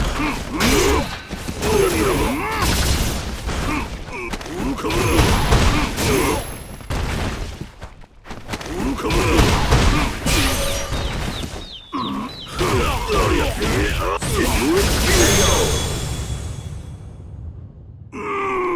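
Heavy punches and kicks land with sharp thuds and cracks.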